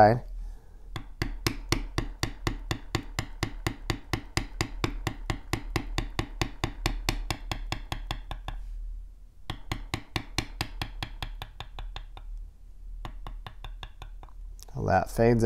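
A mallet taps rapidly and steadily on a metal stamping tool.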